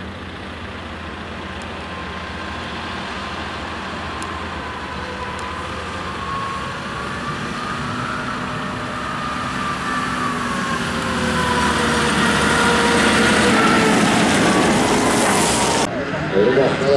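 Water sprays out in a loud hissing rush.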